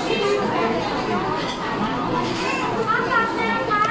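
A ladle clinks against a bowl.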